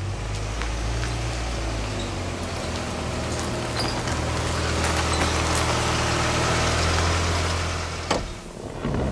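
A car engine hums steadily.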